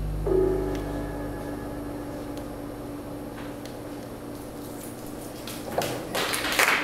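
An upright bass plays a low sustained note.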